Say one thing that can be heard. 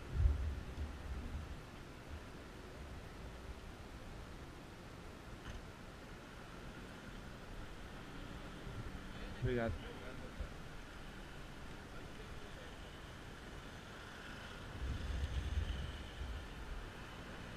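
Wind buffets a microphone outdoors in gusts.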